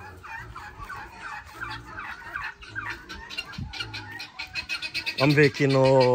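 Chickens cluck and chirp nearby.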